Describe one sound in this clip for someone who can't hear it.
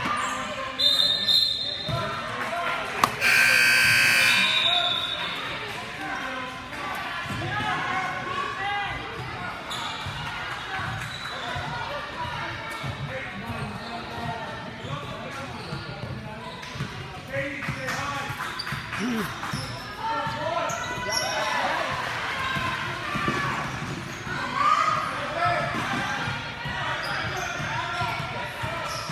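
Spectators chatter and shout in a large echoing gym.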